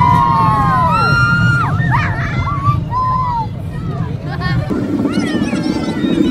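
A roller coaster rumbles loudly along its track.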